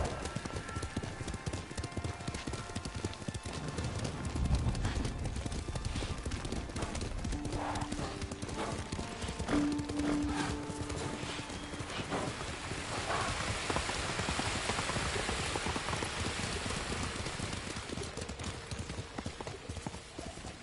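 Horses gallop over a dirt path, hooves pounding.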